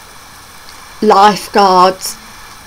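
A woman speaks animatedly close to a microphone.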